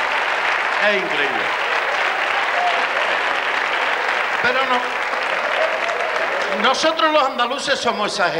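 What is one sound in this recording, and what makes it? A middle-aged man talks with animation into a microphone.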